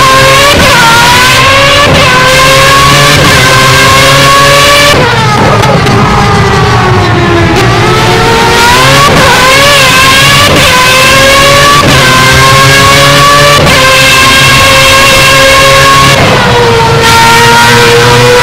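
A racing car engine screams at high revs, rising through each gear and dropping sharply at every shift.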